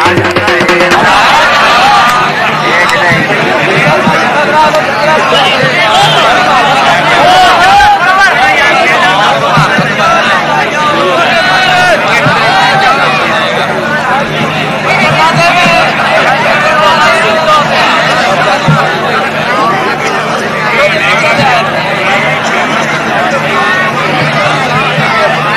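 A large crowd chatters and shouts outdoors.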